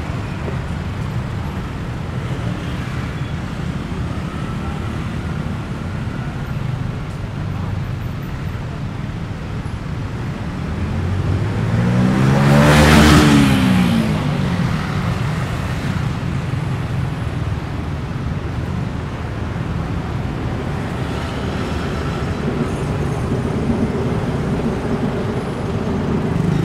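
Traffic hums steadily along a street.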